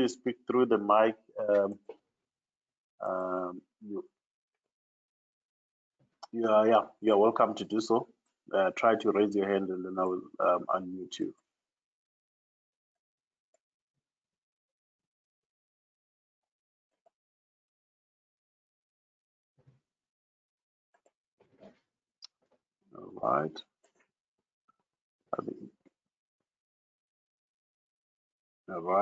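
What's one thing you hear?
A man speaks calmly through a headset microphone over an online call, with long pauses.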